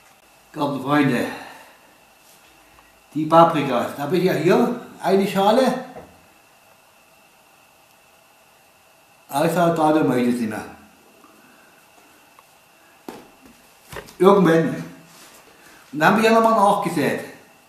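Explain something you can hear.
An older man speaks calmly and close by, in short bursts with pauses.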